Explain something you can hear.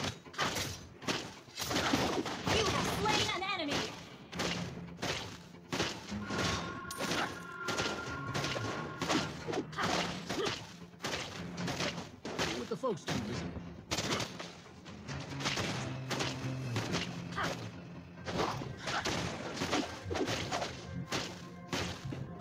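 Fast fighting sound effects clash, zap and thump.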